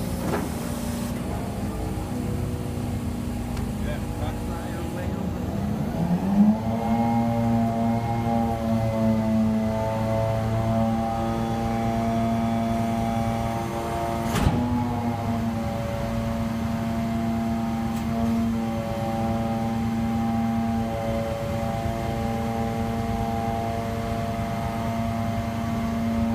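A truck engine idles with a steady low rumble.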